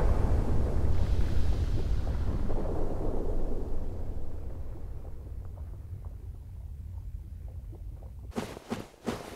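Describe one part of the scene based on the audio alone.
Molten lava rumbles with a deep roar that slowly fades.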